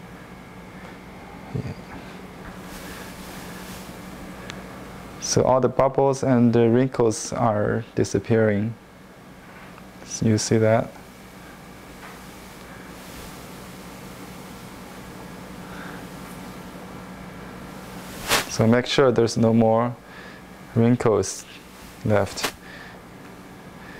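A brush sweeps softly across a smooth surface.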